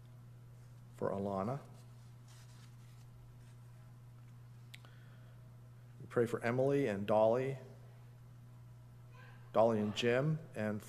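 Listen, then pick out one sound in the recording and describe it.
An older man speaks slowly and calmly through a microphone, with long pauses.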